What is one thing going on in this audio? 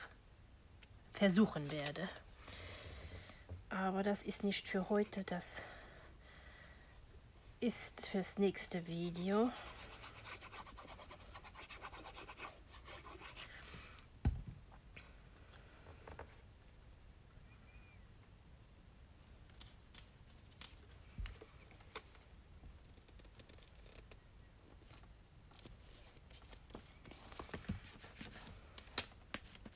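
Paper rustles and slides on a tabletop.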